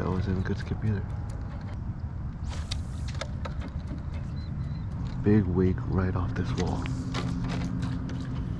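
Water laps gently against a hull.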